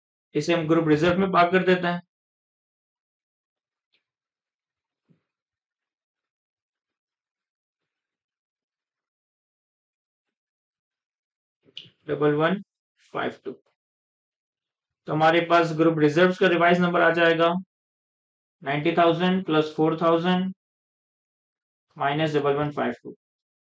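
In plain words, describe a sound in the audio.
A young man speaks calmly and clearly into a close microphone, with pauses.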